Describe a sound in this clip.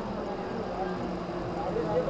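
A truck's engine rumbles along the road.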